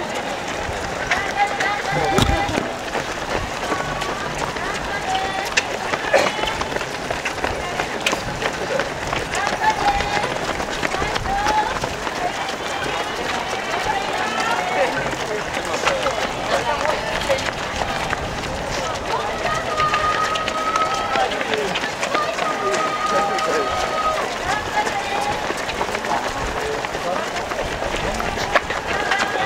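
A crowd of spectators cheers and calls out close by.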